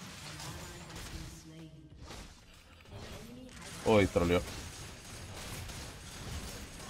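Video game spell effects zap and clash during a fight.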